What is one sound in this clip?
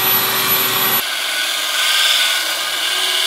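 A grinder rasps against metal.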